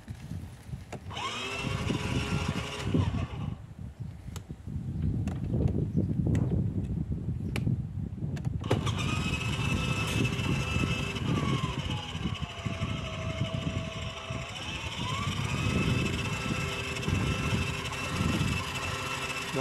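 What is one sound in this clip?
A toy motorbike plays a revving engine sound through a small speaker.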